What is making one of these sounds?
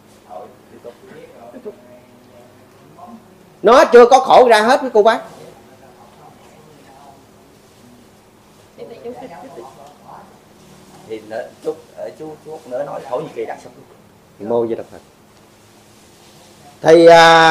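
A middle-aged man talks calmly and close by, at times with animation.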